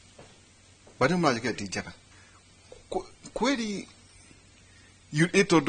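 A middle-aged man speaks with animation into a lapel microphone.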